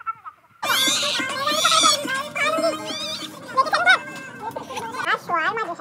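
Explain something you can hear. A girl talks and laughs with excitement.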